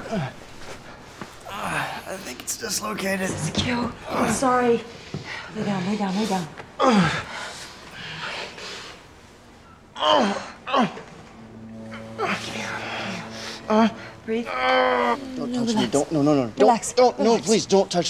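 A young woman speaks urgently and breathlessly close by.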